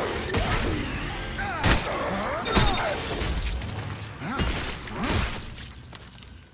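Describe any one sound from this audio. Loud thuds and blows ring out in a fight.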